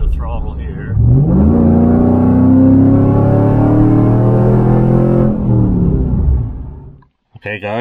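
A car engine revs up as the car speeds up.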